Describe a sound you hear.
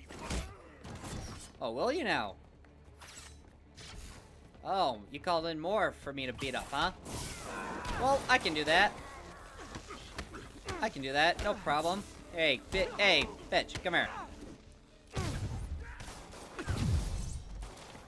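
Punches land with heavy thuds.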